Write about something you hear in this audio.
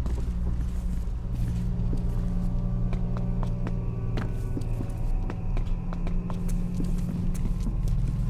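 Footsteps thud on metal stairs.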